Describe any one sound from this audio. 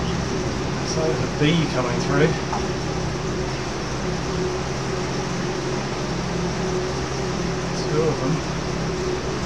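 A man speaks briefly and close by.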